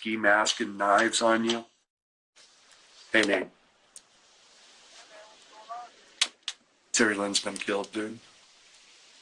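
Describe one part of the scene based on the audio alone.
A middle-aged man talks into a phone in short bursts, up close.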